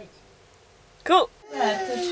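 A young woman sings into a close microphone.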